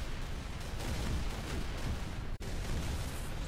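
A huge explosion roars and rumbles.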